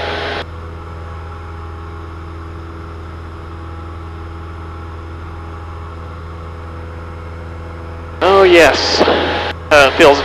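A small propeller engine drones steadily.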